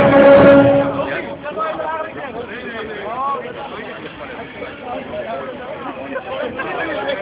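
A crowd of people chatters and calls out nearby, outdoors.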